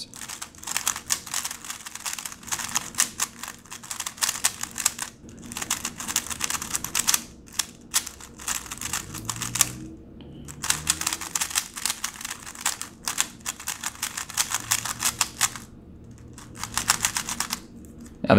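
A puzzle cube clicks and clacks rapidly as its layers are turned.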